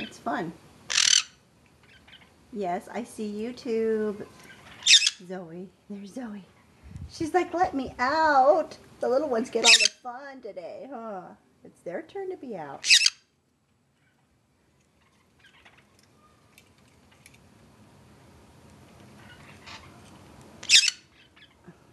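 Small parrots give sharp, shrill squawks now and then.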